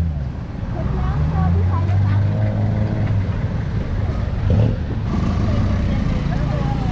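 A motorbike engine idles and revs close by.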